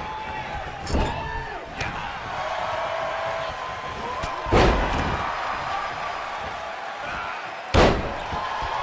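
Heavy thuds ring out as bodies slam onto a wrestling mat.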